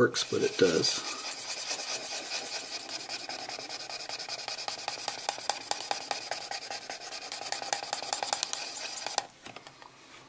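A small rotary tool whirs against plastic.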